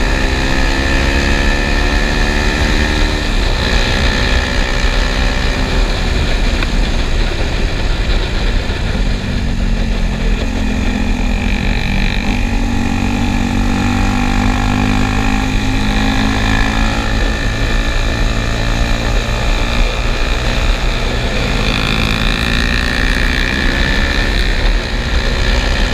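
A motorcycle engine roars up close, its pitch rising and falling as it shifts gears.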